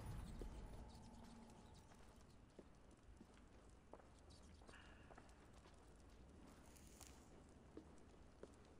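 A torch flame crackles.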